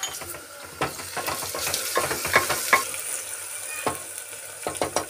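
Food sizzles softly in a hot pot.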